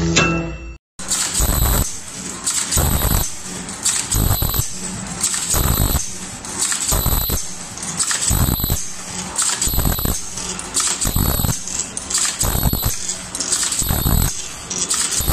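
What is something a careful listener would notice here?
A machine whirs steadily.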